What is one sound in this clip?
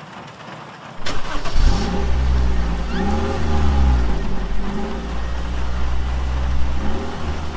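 A car engine rumbles low.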